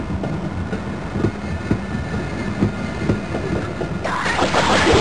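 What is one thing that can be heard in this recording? A rail cart rumbles steadily along a track.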